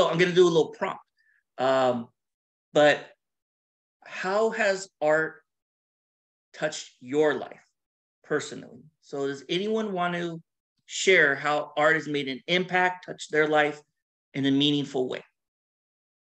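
A man talks with animation through an online call microphone.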